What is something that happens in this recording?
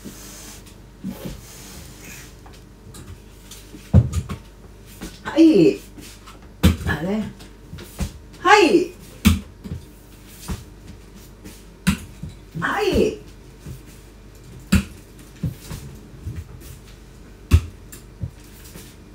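Footsteps shuffle across a wooden floor.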